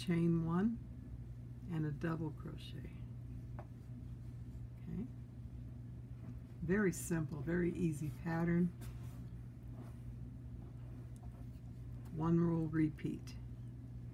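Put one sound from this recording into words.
A crochet hook softly rustles and clicks through yarn.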